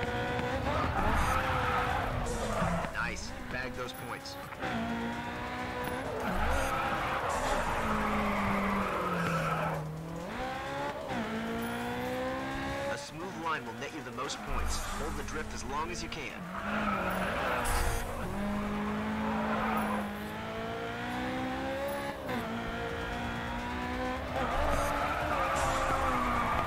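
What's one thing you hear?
A racing car engine revs hard, rising and dropping in pitch with gear changes.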